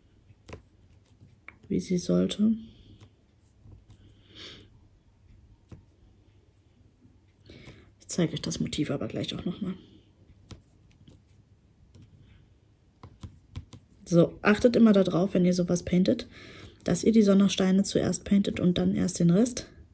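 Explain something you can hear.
A pen tool taps softly on plastic as beads are pressed down.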